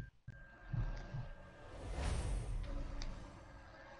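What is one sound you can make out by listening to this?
A game menu plays a rising whoosh as an upgrade is unlocked.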